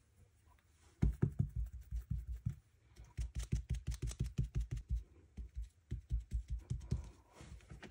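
A foam ink blender taps rapidly against paper.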